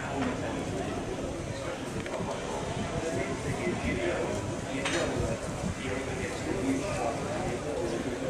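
A crowd of beachgoers murmurs in the distance outdoors.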